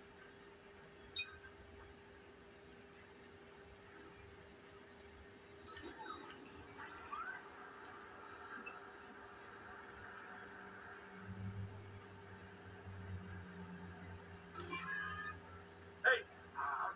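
Electronic video game sound effects beep and whoosh.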